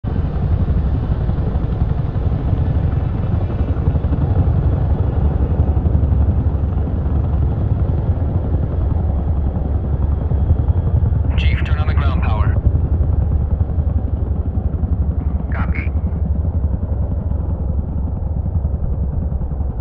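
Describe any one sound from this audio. A jet engine rumbles low and steady from inside the cockpit.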